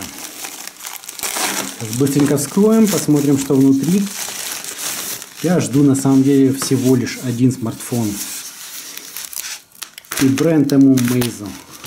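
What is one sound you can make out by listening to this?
A utility knife slices through plastic wrapping.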